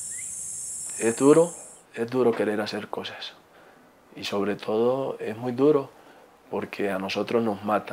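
A young man speaks calmly and earnestly, close to a microphone.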